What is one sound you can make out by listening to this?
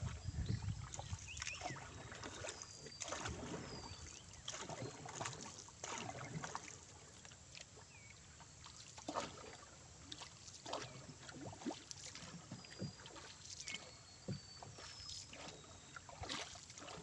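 A wooden paddle splashes and swishes in water.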